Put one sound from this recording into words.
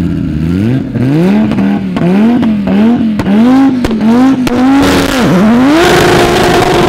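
Car engines rev hard in bursts, rising and falling.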